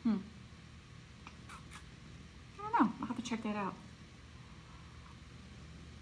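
A middle-aged woman sips from a mug.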